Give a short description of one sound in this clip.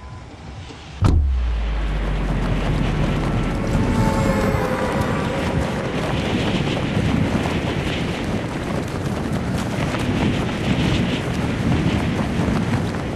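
Wind rushes loudly and steadily during a game character's fall through the air.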